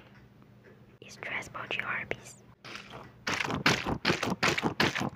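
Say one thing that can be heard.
A young woman whispers close to a microphone.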